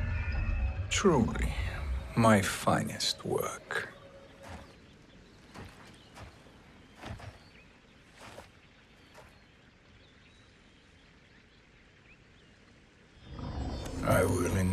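An elderly man speaks calmly and slowly close by.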